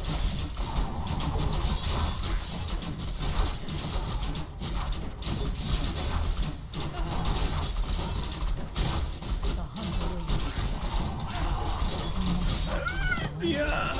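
Weapons clash in a battle.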